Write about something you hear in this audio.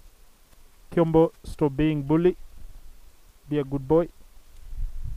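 A man calls out loudly to animals nearby.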